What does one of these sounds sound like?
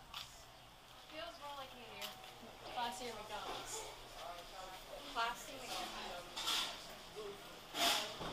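People chatter in the background indoors.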